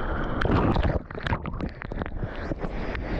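Water splashes and slaps close by.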